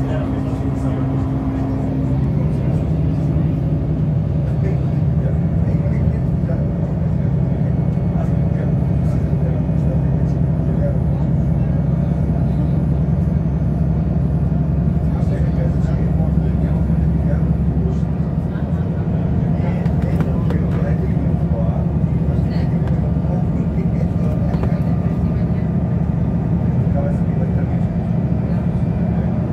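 Tyres roll on the road beneath the bus.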